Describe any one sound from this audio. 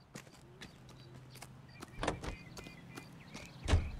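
Footsteps walk across hard ground.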